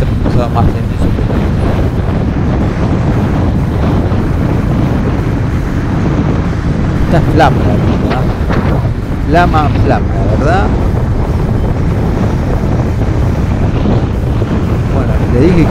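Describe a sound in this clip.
A motorcycle engine drones steadily while riding along.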